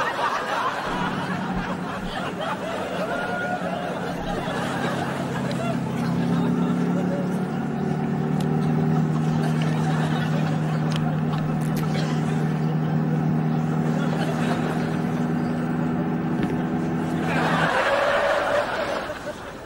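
A small car engine hums while driving.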